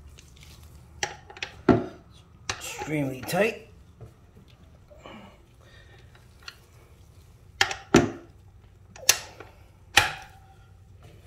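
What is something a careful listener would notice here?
A metal wrench clicks and clanks against a bolt.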